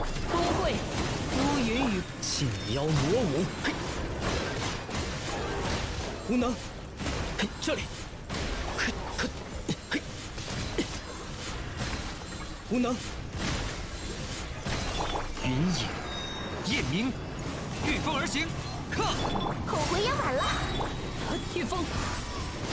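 Game sword slashes and magic blasts whoosh and crash.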